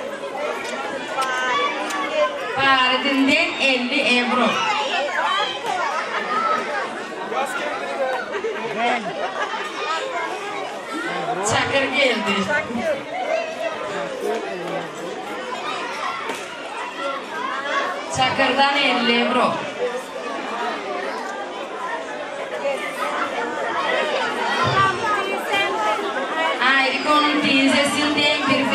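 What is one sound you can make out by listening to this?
A crowd of guests chatters in the background.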